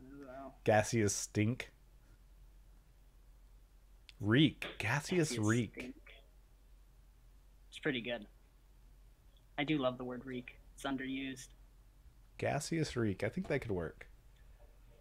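A man talks with animation over an online call.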